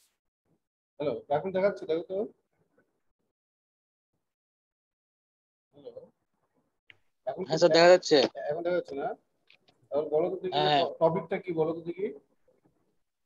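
A middle-aged man speaks calmly through an online call, in short phrases with pauses.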